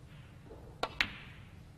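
Snooker balls knock together.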